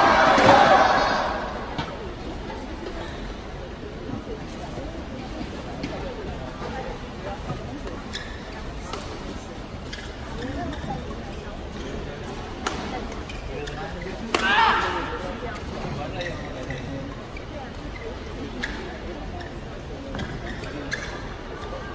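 Shuttlecocks are struck sharply with rackets in a large echoing hall.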